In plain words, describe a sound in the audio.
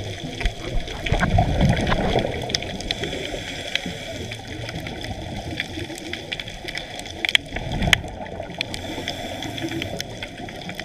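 Water surges and murmurs, heard from underwater.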